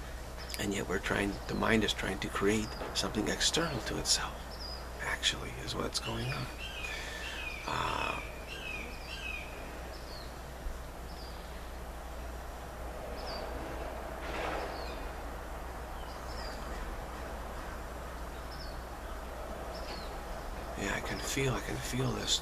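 A middle-aged man speaks calmly and close to the microphone, pausing for a long while in the middle.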